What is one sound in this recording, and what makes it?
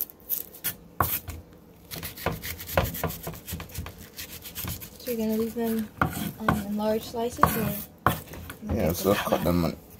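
A knife slices through an onion and taps on a wooden board.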